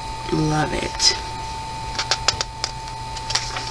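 Fingers rustle and tap against the pages of a book.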